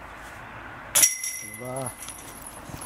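A golf disc strikes the chains of a metal basket, which rattle and ring.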